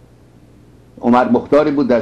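A middle-aged man speaks firmly and with emphasis into a microphone.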